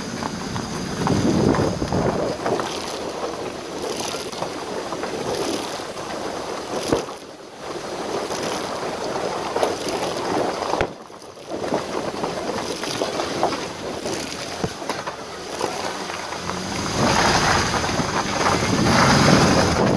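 A vehicle rolls along a rocky gravel track, heard from inside the cab.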